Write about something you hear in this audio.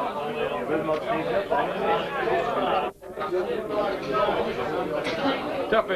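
A crowd of men and women chatter close by in a busy, noisy room.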